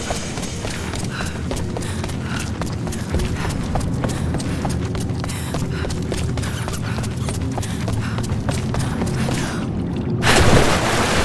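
Footsteps crunch on rock and gravel.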